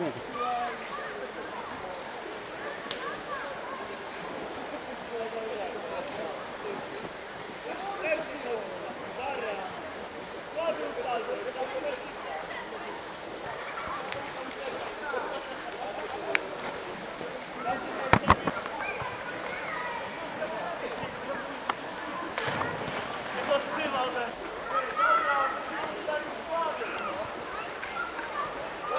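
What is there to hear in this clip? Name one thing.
A crowd of men, women and children chatter and call out at a distance, outdoors.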